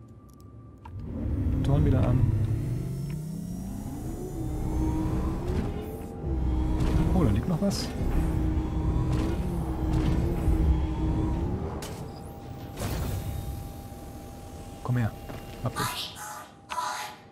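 A vehicle's engine hums and whirs with a rising and falling pitch.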